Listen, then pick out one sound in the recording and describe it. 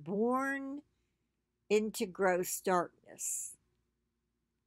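An elderly woman speaks with feeling, close to a microphone in an online call.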